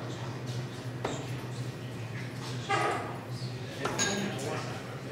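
Darts thud into a dartboard one after another.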